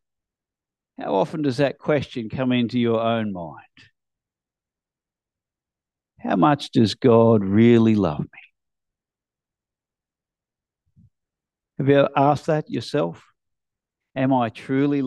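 A man reads aloud slowly through a microphone, with pauses between phrases.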